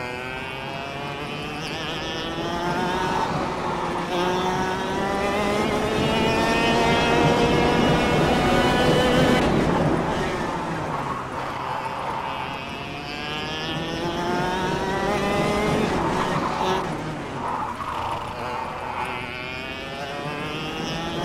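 A kart engine buzzes loudly, its pitch rising as it speeds up and dropping into the corners.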